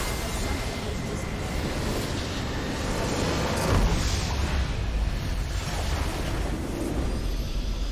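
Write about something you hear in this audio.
A large structure explodes with a deep rumbling blast.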